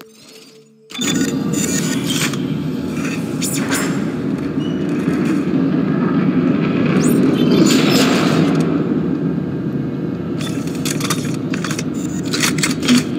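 Heavy metal boots clank on a metal floor.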